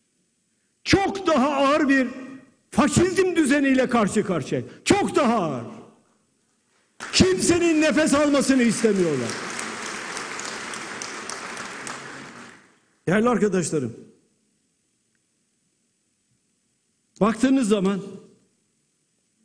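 An elderly man speaks forcefully into a microphone in a large echoing hall.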